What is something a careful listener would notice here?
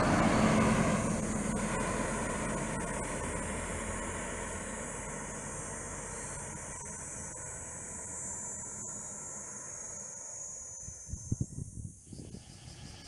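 A bus engine rumbles as the bus drives away up a road and fades into the distance.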